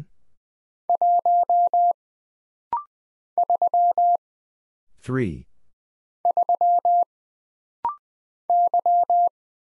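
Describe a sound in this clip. A telegraph key taps out Morse code as quick bursts of steady beeps.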